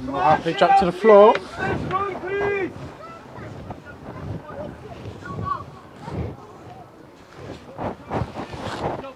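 Young men shout to each other outdoors on an open field.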